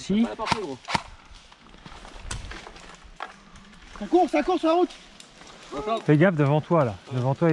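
Dry leaves rustle and crunch as a man shifts on the ground.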